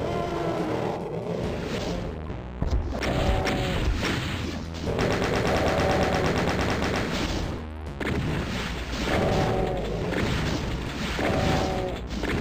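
Video game gunfire bangs and blasts repeatedly.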